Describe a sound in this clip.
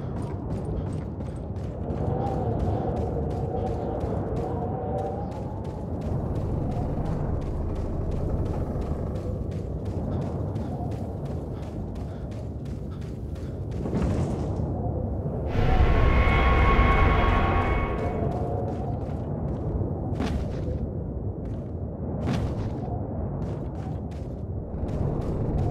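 Footsteps crunch steadily over dirt and wooden planks.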